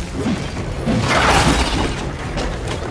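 A magical blast whooshes and crackles.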